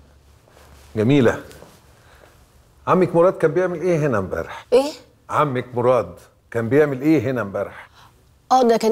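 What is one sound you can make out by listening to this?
An older man speaks loudly and with agitation, close by.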